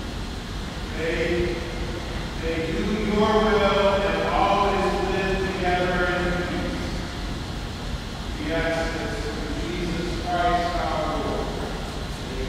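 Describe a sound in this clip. An elderly man speaks with a slow, solemn voice in a large echoing hall.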